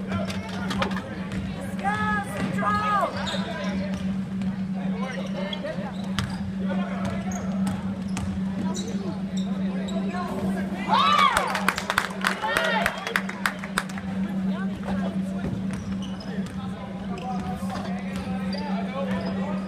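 Spectators call out in a large echoing gym.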